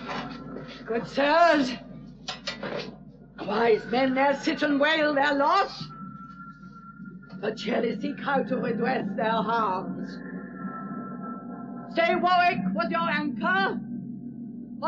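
A man speaks in anguish, crying out close by.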